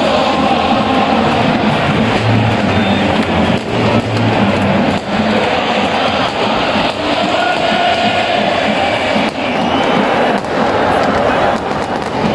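Fireworks crackle and pop above a stadium.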